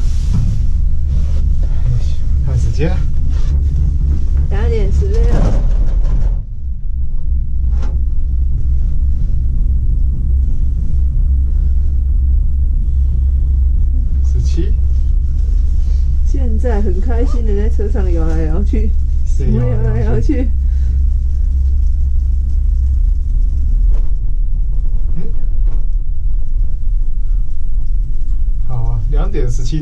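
A young person talks nearby.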